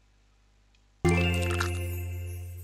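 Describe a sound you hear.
A cheerful game jingle rings out.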